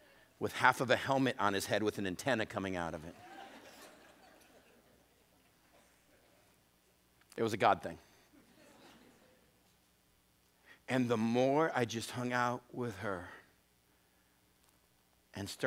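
A middle-aged man speaks with animation through a microphone in a large echoing room.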